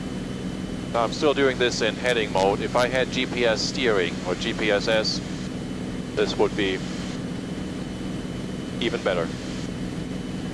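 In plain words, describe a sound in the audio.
A man speaks calmly over an aircraft headset intercom.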